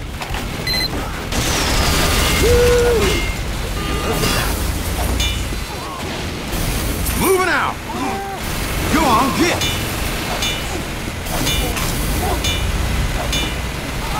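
A wrench clangs against metal again and again.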